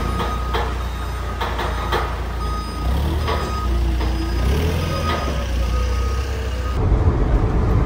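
A forklift engine hums and whirs as the forklift drives.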